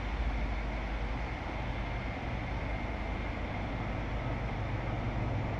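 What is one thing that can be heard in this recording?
A train approaches with a low, steady rumble.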